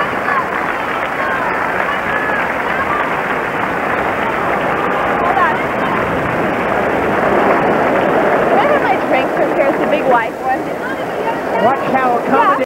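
Many people in a large crowd chatter and shout.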